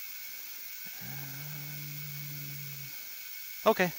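An ultrasonic cleaner hums steadily.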